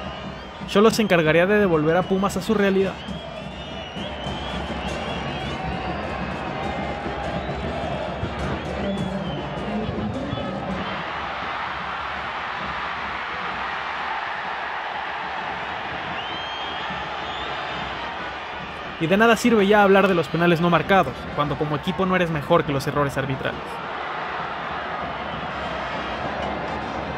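A large stadium crowd roars and chants outdoors.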